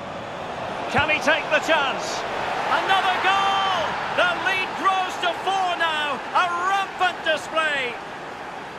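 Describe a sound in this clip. A stadium crowd cheers and whistles loudly after a goal.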